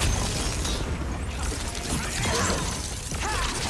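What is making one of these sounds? A magical whoosh swirls as a fiery attack lands.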